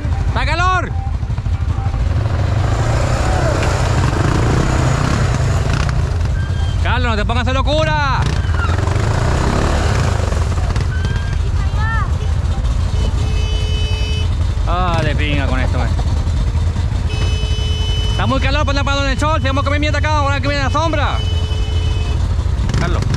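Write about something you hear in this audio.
Off-road vehicle engines rumble steadily close by.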